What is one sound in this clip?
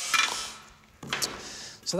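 A metal piece clatters as it is set down on a table.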